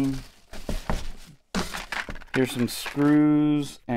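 Paper rustles and crinkles up close.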